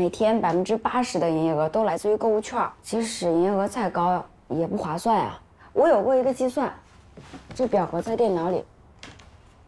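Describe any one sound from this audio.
A young woman speaks earnestly, close by.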